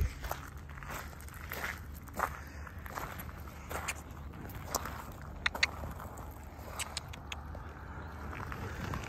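A swan's feet crunch and patter on gravel.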